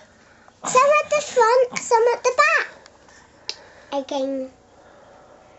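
A young girl speaks close by, high-pitched and excited.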